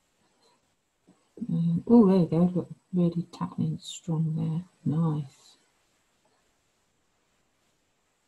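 A paintbrush brushes softly across paper.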